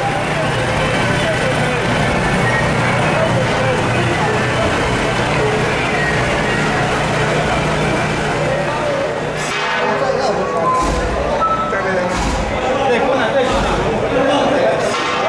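A large crowd murmurs and chatters all around.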